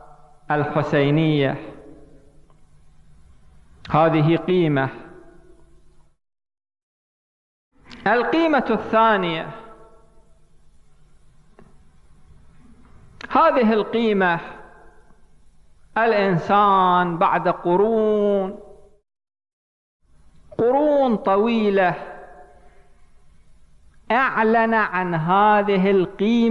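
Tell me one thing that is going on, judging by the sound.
A man speaks into a microphone in bursts, chanting and preaching with long pauses between phrases.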